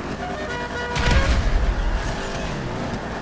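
A car crashes with a loud thud.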